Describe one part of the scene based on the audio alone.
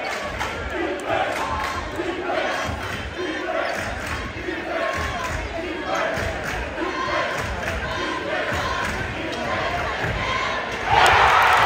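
Basketball sneakers squeak on the court.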